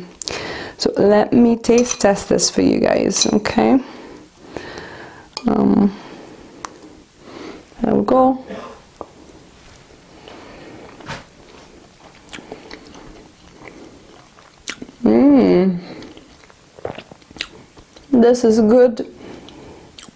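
A woman speaks calmly and close to a lapel microphone.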